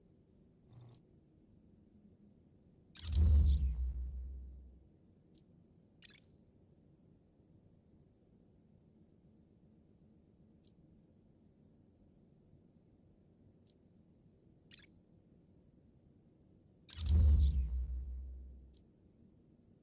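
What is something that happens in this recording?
Short soft clicks tick now and then as menu items are selected.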